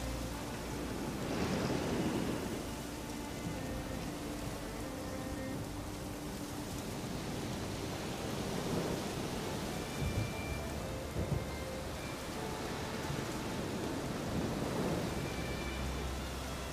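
Thunder rumbles and booms in the distance.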